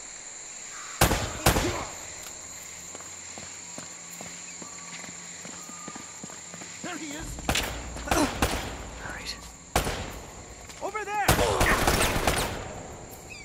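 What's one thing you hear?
Pistol shots ring out sharply.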